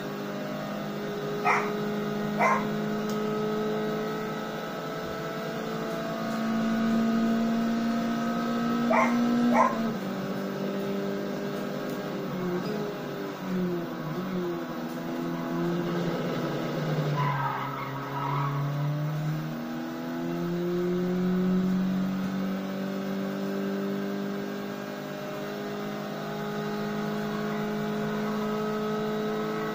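A racing car engine roars steadily through a television speaker, its pitch rising and dropping with gear changes.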